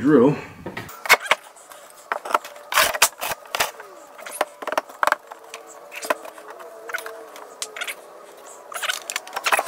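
A wooden board knocks and scrapes against a wall.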